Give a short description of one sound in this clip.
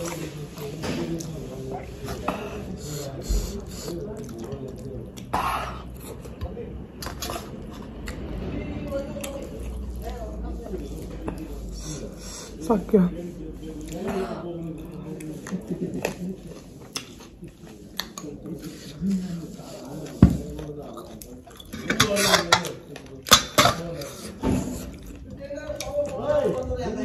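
A young woman chews food loudly with smacking sounds close to a microphone.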